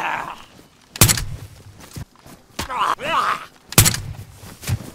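Gunshots crack loudly, a few seconds apart.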